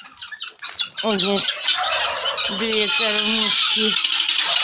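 A flock of helmeted guineafowl chatters and calls in harsh, rapid cries.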